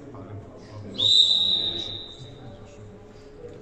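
A scoreboard buzzer sounds loudly in an echoing hall, then fades.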